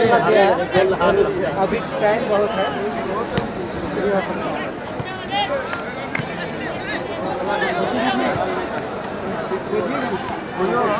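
A large crowd of spectators chatters and cheers loudly outdoors.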